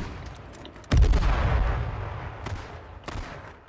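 A loud explosion booms nearby and rumbles away.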